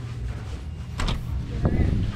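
A door bumps as it is pushed open.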